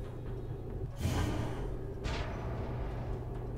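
A digital card game plays a whooshing impact effect.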